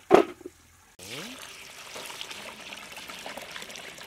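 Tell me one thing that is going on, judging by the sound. Water splashes and pours onto lentils.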